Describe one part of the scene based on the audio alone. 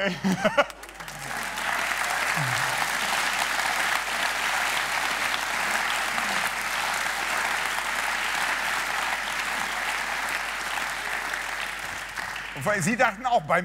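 An audience applauds and cheers in a studio.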